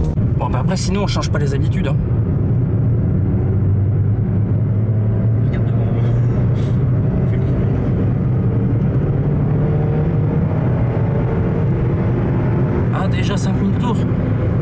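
A car engine hums steadily inside the cabin and revs up as the car speeds up.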